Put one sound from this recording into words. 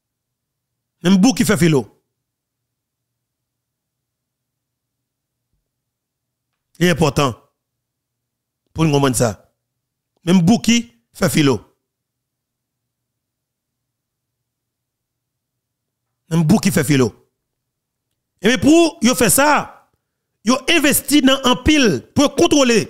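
A man speaks close to a microphone in short bursts with long pauses, growing more animated.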